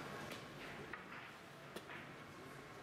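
A chess piece is set down on a board with a light click.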